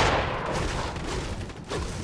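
A gun fires a shot.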